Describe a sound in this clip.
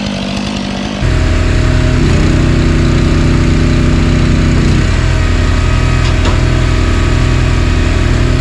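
A petrol engine idles steadily with a low rumble.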